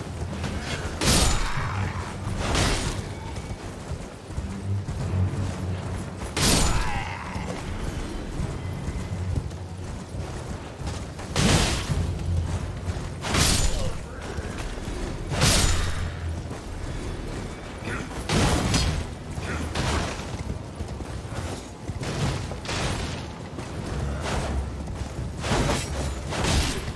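Swords clash and slash with sharp, loud hits again and again.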